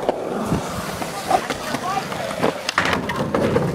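Skateboard wheels roll and rattle over concrete.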